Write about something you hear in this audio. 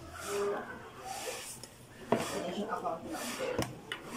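A serving spoon clinks against a dish.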